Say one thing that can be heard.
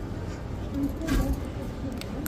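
A hand presses a plastic button with a click.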